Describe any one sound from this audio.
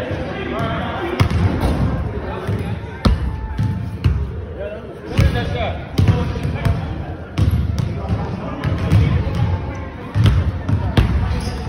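A basketball bounces with thuds on a wooden floor.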